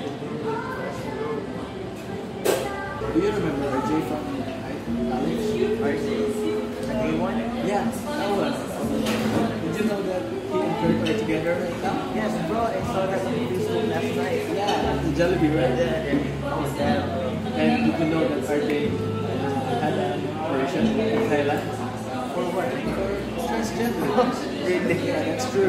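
A second young man answers nearby.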